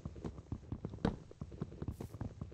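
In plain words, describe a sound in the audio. A stone block crumbles and breaks apart.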